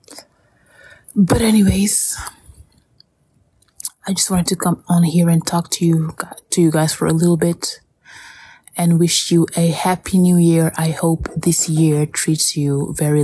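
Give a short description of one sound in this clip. A young woman sings loudly close to the microphone.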